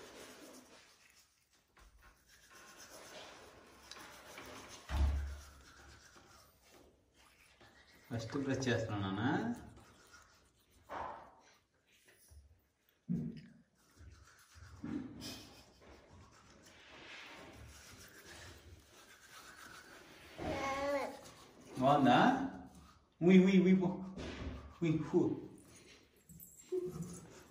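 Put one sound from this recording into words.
A toothbrush scrubs softly against a small child's teeth.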